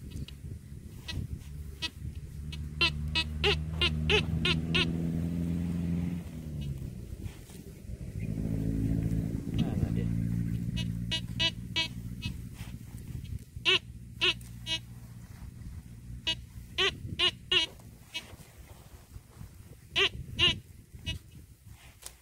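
A metal detector beeps in short, repeated bursts as it sweeps over the ground.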